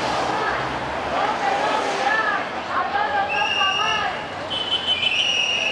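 A crowd of protesters chants loudly outdoors.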